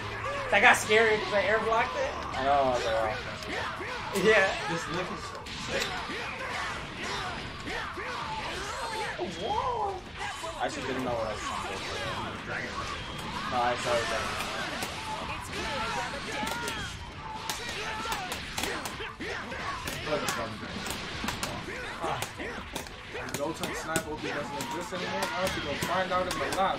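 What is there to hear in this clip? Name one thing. Punches and kicks land with sharp hits in rapid bursts.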